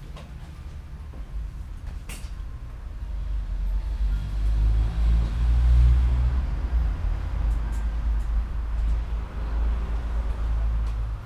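A bicycle chain whirs as the pedals are turned by hand.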